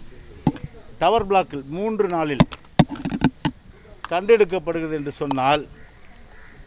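A middle-aged man speaks firmly into microphones up close.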